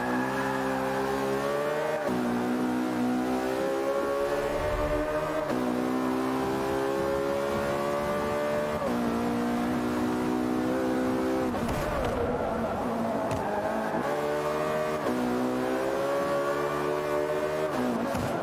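A racing car engine roars, rising in pitch through each gear and dropping sharply at every gear change.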